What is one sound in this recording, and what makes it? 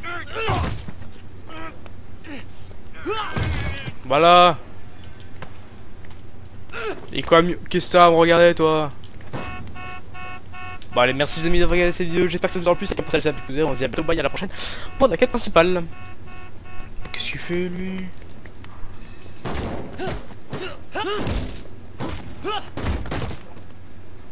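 Fists thud in blows during a scuffle.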